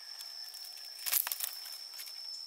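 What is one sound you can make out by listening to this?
Dry bamboo strips clatter as they are dragged across the ground.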